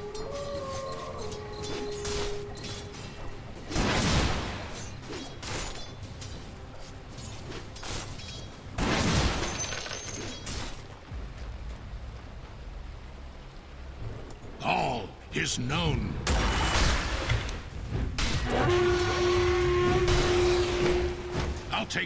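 Game battle sounds of spells and hits burst and clash.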